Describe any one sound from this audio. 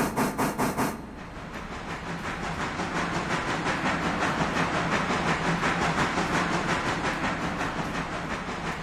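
A steam locomotive rumbles along the track with a steady roar.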